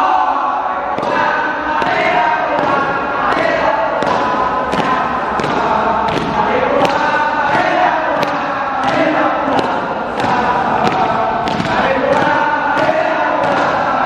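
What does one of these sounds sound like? Feet stamp on a hard floor in a steady marching rhythm.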